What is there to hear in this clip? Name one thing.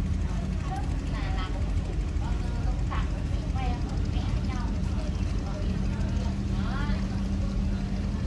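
Several adults chat quietly at a distance outdoors.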